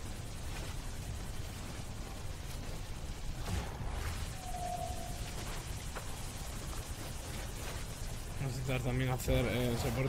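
A mining laser hums steadily.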